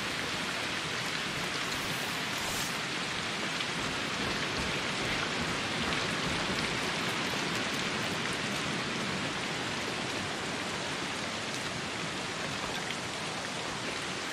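Water rushes steadily from a waterfall nearby.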